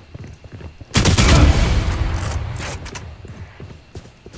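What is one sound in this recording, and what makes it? A sniper rifle fires a loud, booming shot.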